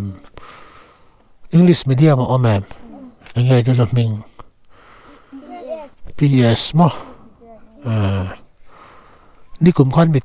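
Young children talk with animation close by.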